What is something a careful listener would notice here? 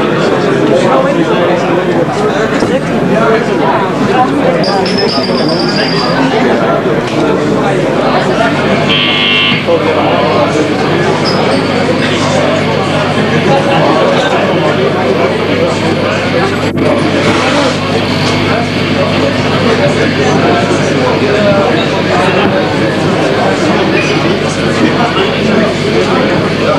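A drummer pounds a drum kit.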